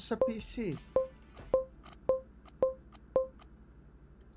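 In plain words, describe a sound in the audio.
Short electronic beeps sound as a menu is clicked through.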